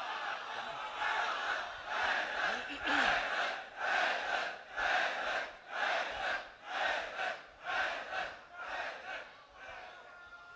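A large crowd chants together in a steady rhythm.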